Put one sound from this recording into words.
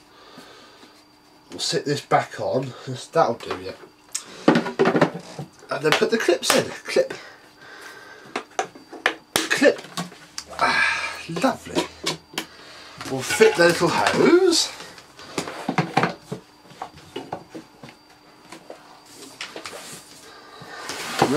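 Plastic parts clunk and click as they are fitted together.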